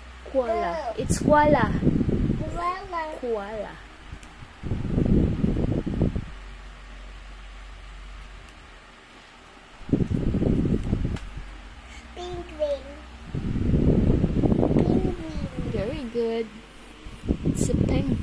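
A young girl talks close by in a high, lively voice.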